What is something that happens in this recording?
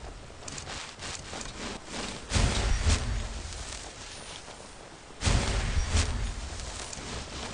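Footsteps run over stone and gravel.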